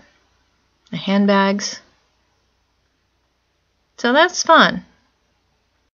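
A woman speaks close to a microphone, with animation.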